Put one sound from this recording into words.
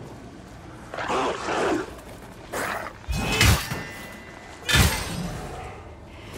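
Metal weapons clash and strike with sharp impacts.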